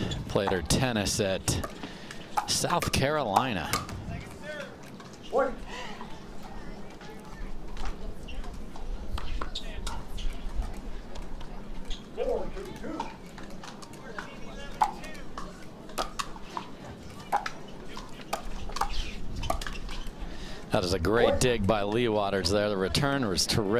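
Paddles strike a plastic ball with sharp pops in a quick rally.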